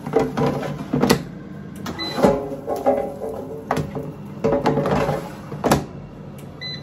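A fryer basket slides and clicks into place.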